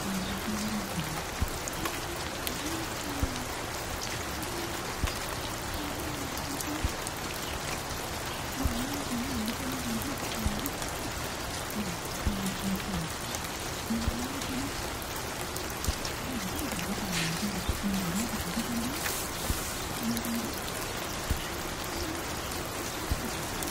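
Soft, slow music plays from a record player.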